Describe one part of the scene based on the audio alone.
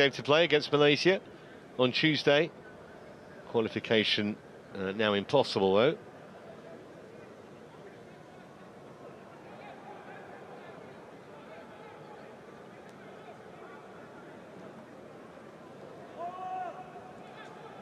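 A large crowd murmurs in a stadium.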